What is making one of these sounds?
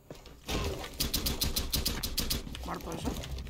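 Rapid gunshots fire in a game.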